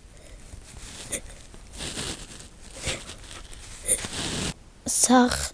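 A boy sobs and sniffles softly.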